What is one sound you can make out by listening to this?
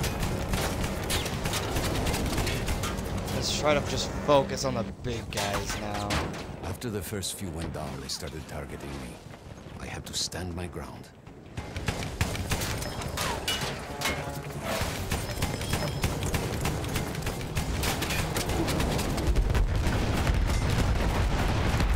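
An anti-aircraft gun fires in rapid bursts.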